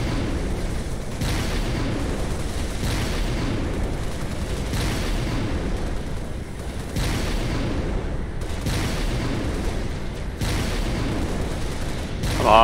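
Plasma weapons fire in bursts with electric zaps.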